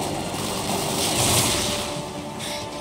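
An explosion booms loudly nearby.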